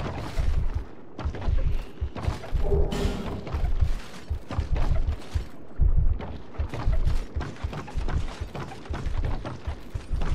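Footsteps thump on creaking wooden boards.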